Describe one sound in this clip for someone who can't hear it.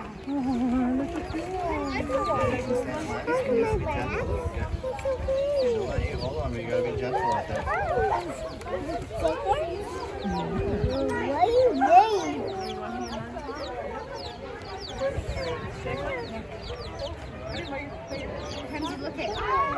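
A chick cheeps rapidly in high, short peeps.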